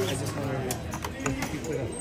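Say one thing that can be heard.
Casino chips click against each other.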